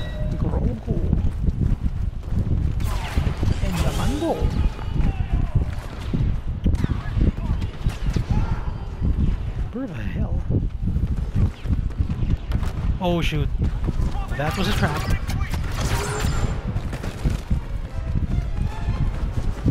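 Blaster guns fire in rapid bursts with loud zapping shots.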